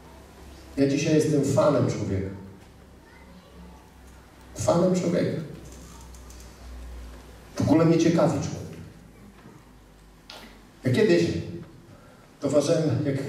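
A man speaks in bursts with pauses, heard through a microphone in a large room.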